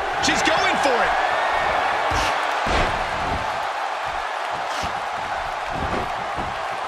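A large crowd cheers steadily throughout.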